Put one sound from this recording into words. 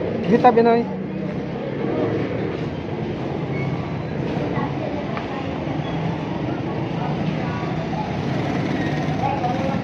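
Cars and motorbikes rumble past on a street.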